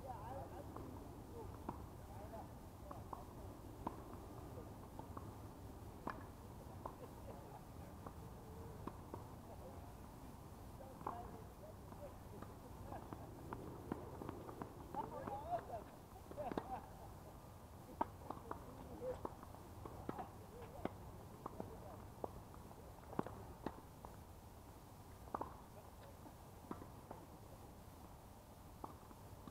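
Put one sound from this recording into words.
Tennis balls are struck with rackets outdoors, in sharp pops.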